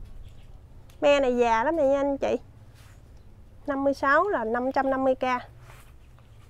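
A woman speaks with animation close by.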